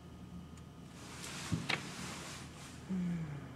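A sheet of paper crinkles.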